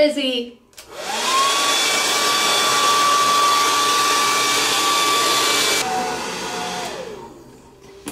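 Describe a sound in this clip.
A hair dryer whirs loudly with a steady high whine, then winds down.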